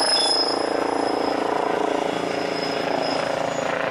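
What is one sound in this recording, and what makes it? Buses and cars rumble past in street traffic.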